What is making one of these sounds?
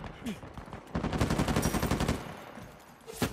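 Blows land in a scuffle at close range.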